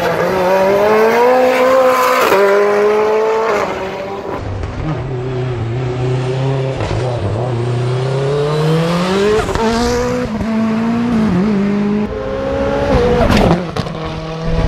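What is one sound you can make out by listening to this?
A race car engine roars loudly and revs up and down through gear changes.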